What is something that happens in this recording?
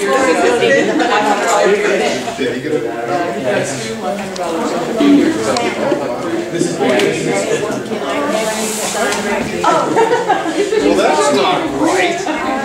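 Several men and women talk at once nearby in a busy room.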